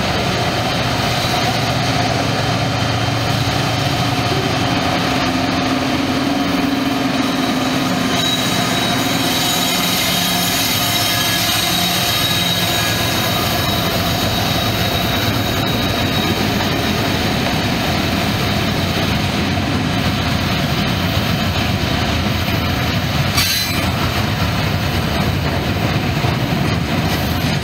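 A freight train rumbles and clanks loudly past on the tracks.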